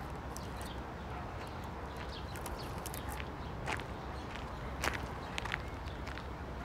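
A plastic wrapper crinkles in a man's hands.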